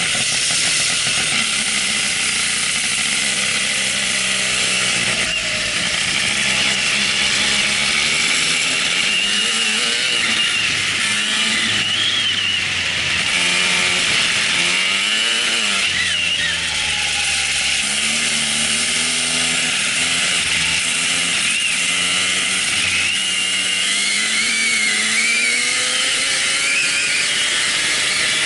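A kart engine buzzes loudly up close, its pitch rising and falling with the speed.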